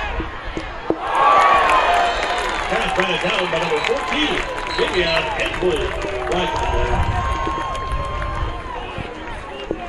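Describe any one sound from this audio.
A crowd cheers loudly in an open stadium.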